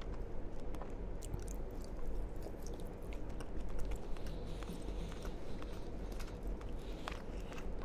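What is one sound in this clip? A young man chews food with wet, crunchy mouth sounds close to a microphone.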